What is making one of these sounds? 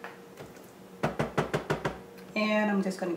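A spatula knocks and scrapes against a plastic food processor bowl.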